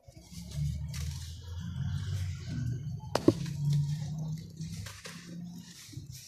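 Clumps of dry clay crumble and crack between hands.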